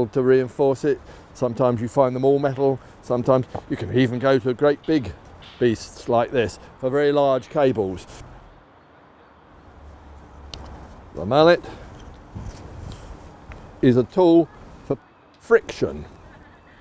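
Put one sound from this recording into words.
An elderly man talks calmly, close by.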